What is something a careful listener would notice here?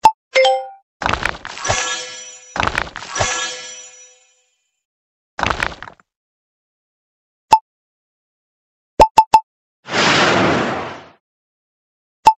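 Game dice rattle as they roll.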